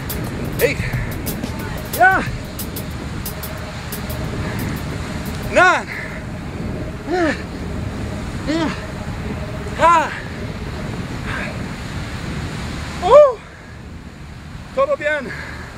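A man calls out short, loud words in bursts, close by.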